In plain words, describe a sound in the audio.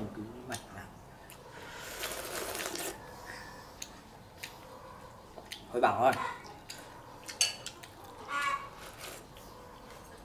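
A young man slurps soup from a bowl.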